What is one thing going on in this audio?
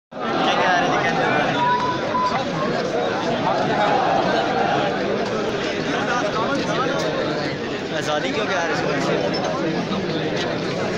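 A large crowd of men murmurs and chatters outdoors.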